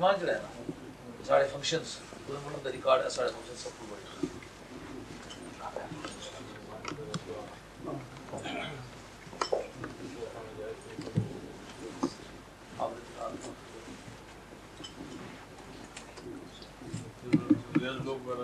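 Plates and dishes clink softly.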